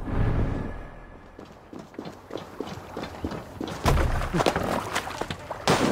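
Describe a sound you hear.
Footsteps run quickly over wooden planks.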